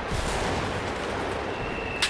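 Footsteps thud quickly on the ground.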